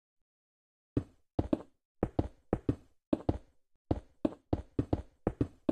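Blocks are set down one after another with quick, dull knocking taps.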